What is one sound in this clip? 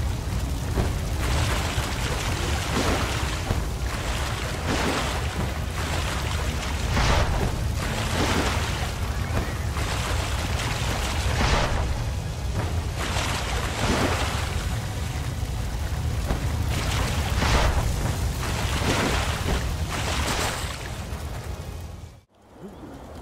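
Water splashes and churns in quick, repeated surges.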